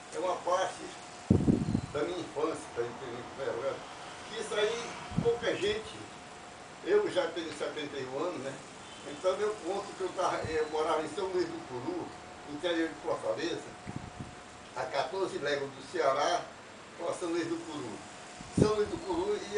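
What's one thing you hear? An elderly man talks calmly and steadily, close by.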